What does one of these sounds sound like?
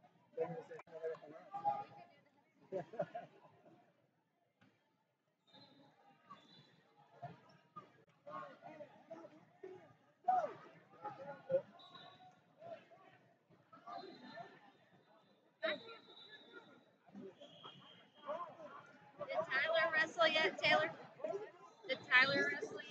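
Adult spectators and coaches shout encouragement in a large echoing hall.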